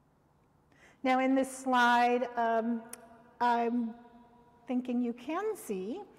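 An older woman speaks slowly and clearly, reading aloud into a microphone in a quiet, echoing room.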